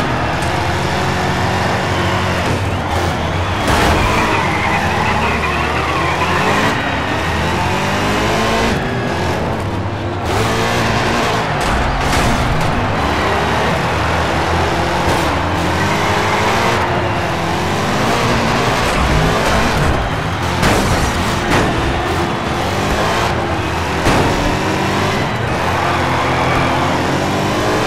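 Racing car engines roar and rev up and down.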